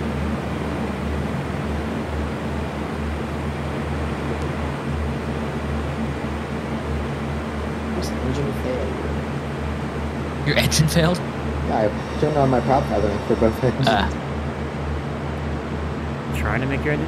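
An aircraft engine drones steadily.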